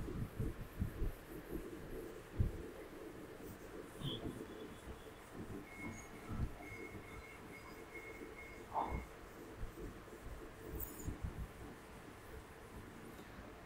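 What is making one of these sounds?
A duster rubs softly across a whiteboard.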